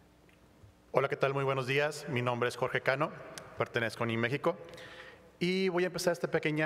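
A middle-aged man speaks clearly into a microphone.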